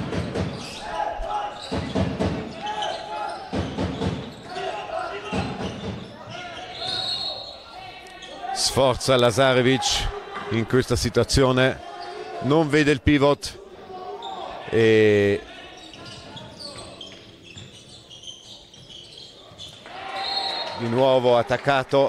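Sports shoes squeak on the floor.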